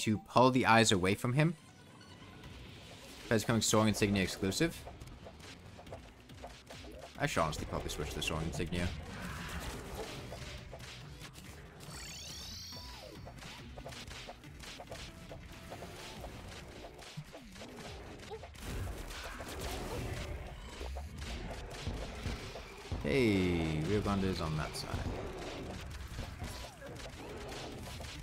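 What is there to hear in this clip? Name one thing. Rapid magical shots fire and crackle.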